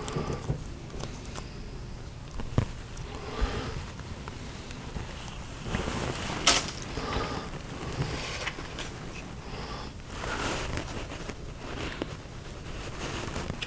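A man speaks calmly and close, through a clip-on microphone.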